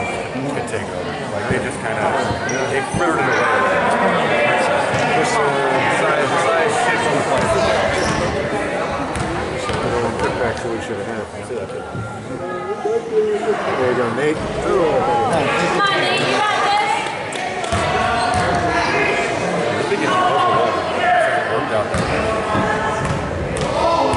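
A crowd of spectators chatters and calls out, echoing in a large gym.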